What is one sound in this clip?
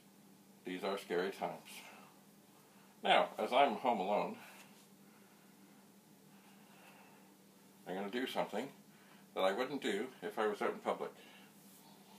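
An older man speaks calmly and close by, in short bursts.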